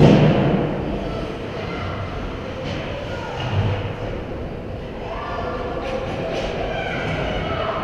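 A hockey goalie's skates scrape on the ice in a large echoing rink.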